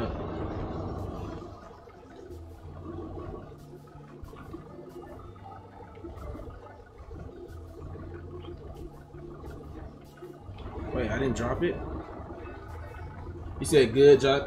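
A small loader's engine rumbles steadily.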